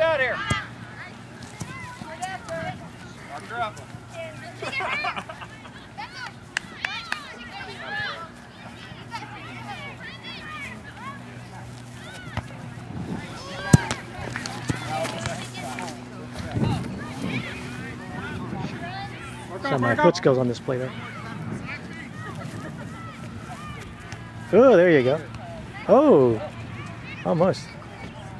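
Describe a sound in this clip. Young girls shout and call out across an open field.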